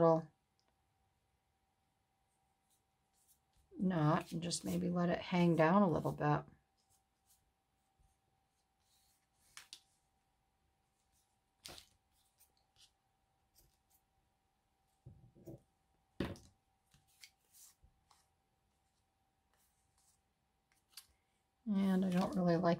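Paper rustles and crinkles as hands fold it.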